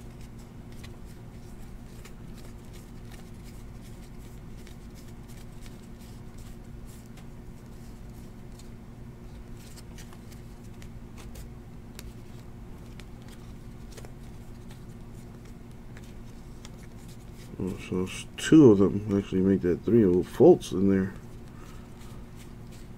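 Trading cards slide and flick softly against each other as hands shuffle through a stack.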